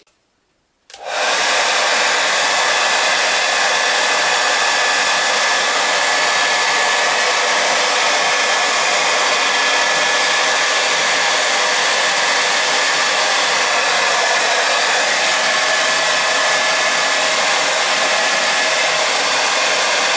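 A hair dryer blows on a high setting.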